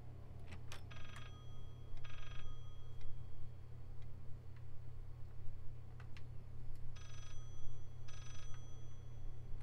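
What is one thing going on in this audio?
An old telephone rings with a bright bell.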